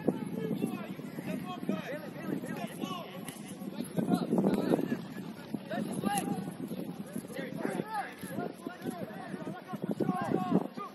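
Young men shout and call to each other across an open outdoor field.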